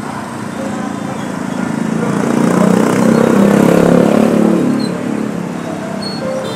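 Motorbike engines rumble loudly as several scooters ride close alongside.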